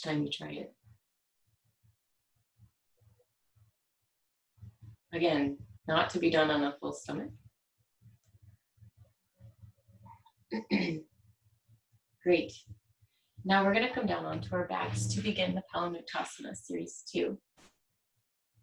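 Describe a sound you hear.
A young woman speaks calmly and softly nearby, with pauses.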